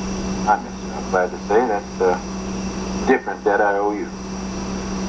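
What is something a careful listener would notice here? A middle-aged man speaks, heard through a television speaker.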